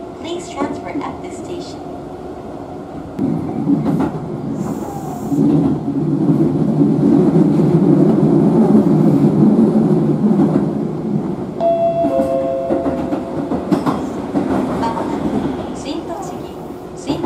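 A train rumbles and rattles along the tracks, growing louder and then easing off.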